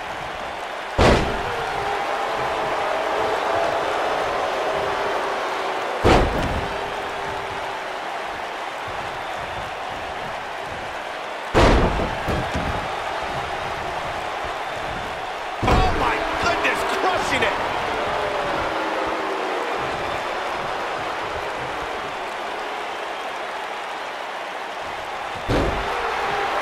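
Bodies slam heavily onto a wrestling ring mat.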